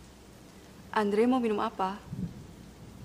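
A young woman asks a question calmly and close by.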